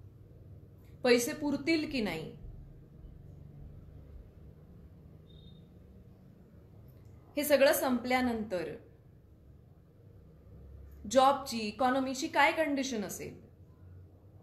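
A young woman speaks calmly and softly close to the microphone, in short phrases with pauses.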